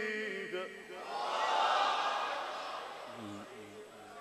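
A crowd of men calls out in approval.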